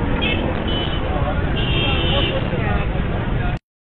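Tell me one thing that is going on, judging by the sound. A motorcycle engine runs close by.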